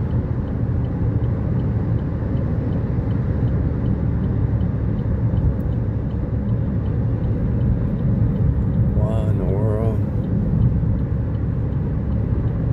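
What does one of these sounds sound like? A car engine hums and tyres rumble steadily on a highway.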